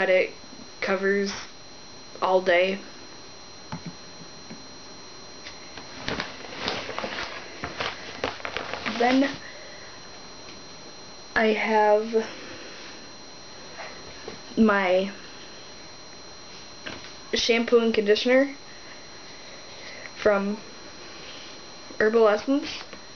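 A young woman talks in short bursts close by.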